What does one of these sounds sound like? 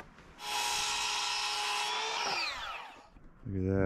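A circular saw whines as it cuts through wood, then winds down.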